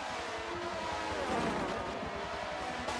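A race car roars past, its pitch dropping as it goes by.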